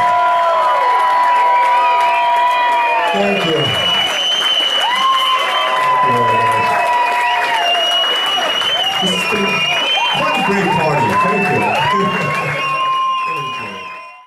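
A drum kit thumps along with the band.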